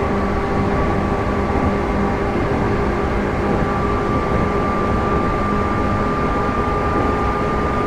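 Another train rushes past close by.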